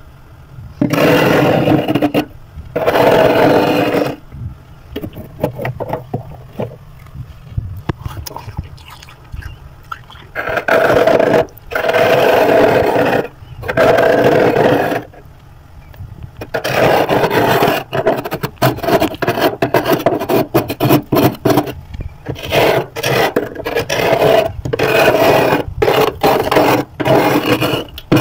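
A metal spoon scrapes thick, crunchy frost from a freezer wall.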